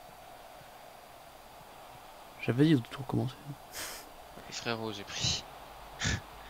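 A stadium crowd murmurs steadily in the distance.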